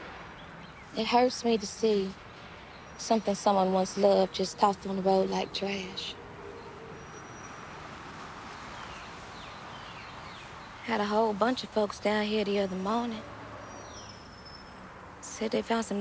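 A young girl speaks with feeling, close by.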